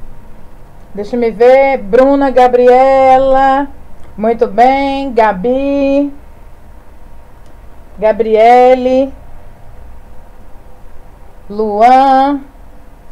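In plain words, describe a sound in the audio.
An elderly man sings in short phrases through a microphone.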